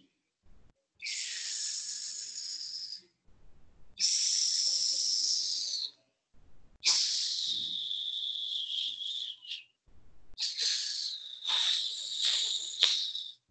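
A woman makes long, loud hissing sounds close by, like a snake.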